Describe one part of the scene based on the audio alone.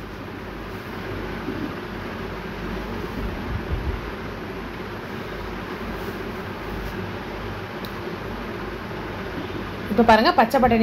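Vegetables sizzle and bubble steadily in a hot pot.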